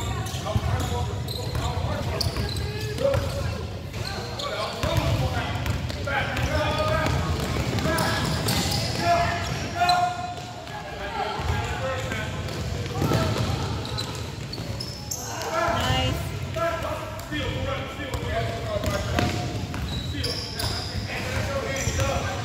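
Young male players shout and call out across a large echoing hall.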